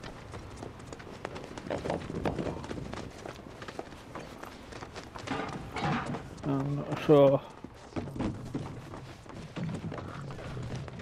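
Footsteps crunch on gravel and thump on wooden boards.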